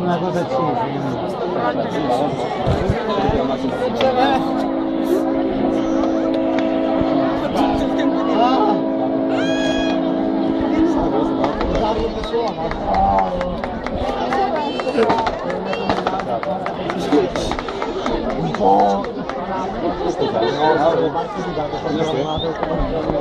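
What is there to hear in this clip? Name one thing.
Fireworks crackle and sizzle steadily.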